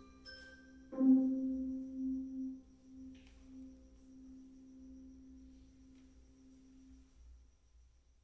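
A man sings a long, held final note.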